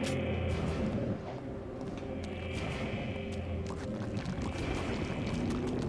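Sharp blows and slashes land in a fight.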